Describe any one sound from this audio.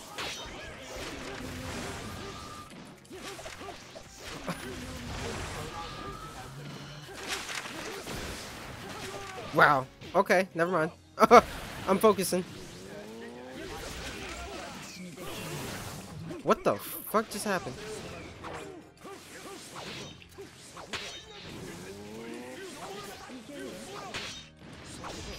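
Game fighters clash with whooshes and impact bursts.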